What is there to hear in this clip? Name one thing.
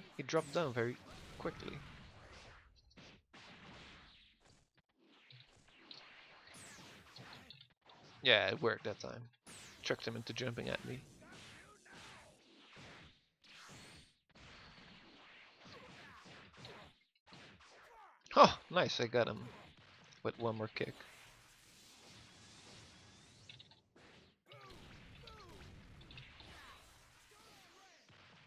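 Punches and kicks land with sharp smacks and thuds.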